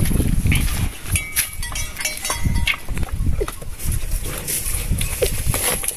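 A calf suckles noisily at a cow's udder.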